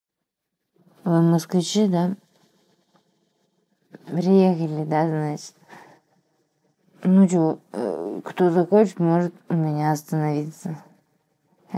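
A woman speaks calmly, close by, with pauses.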